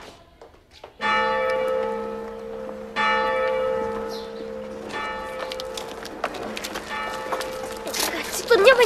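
A large church bell tolls loudly, its ringing lingering between strikes.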